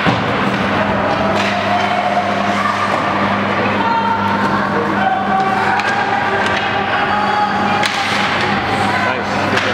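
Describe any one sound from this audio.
Ice skates scrape and carve across the ice in a large echoing arena.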